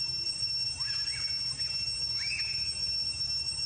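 A young monkey squeaks softly.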